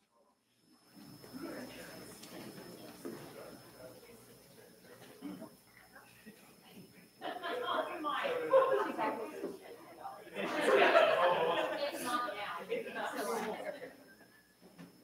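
People chatter and murmur in a large room.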